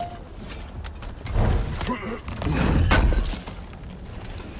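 A heavy chest lid creaks and bangs open.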